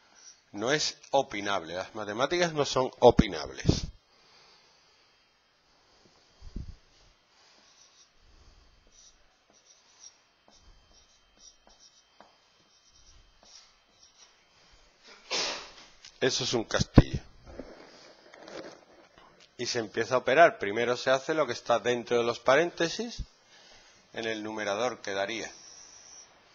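A man talks calmly nearby, pausing between phrases.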